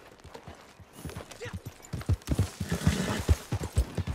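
A horse's hooves thud on a dirt path.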